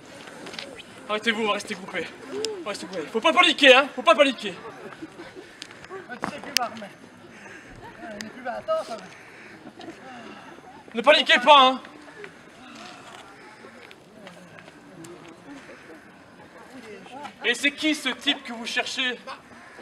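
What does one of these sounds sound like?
Young women and men talk and laugh nearby outdoors.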